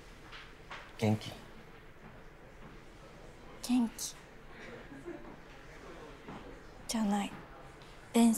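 A young woman speaks softly in short phrases.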